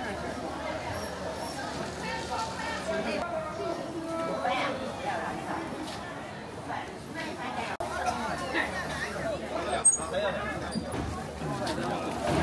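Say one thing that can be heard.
A crowd of people chatter nearby outdoors.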